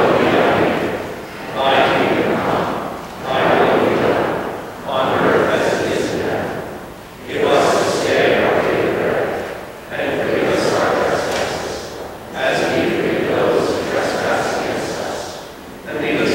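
A congregation sings together in a large echoing hall, phrase after phrase.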